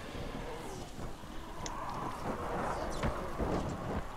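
Fire crackles and roars from a burning car.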